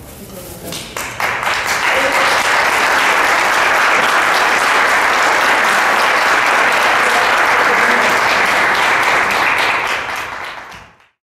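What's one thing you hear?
An audience claps and applauds loudly in a large hall.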